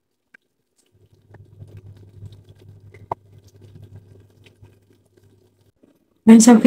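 Liquid simmers gently in a pot.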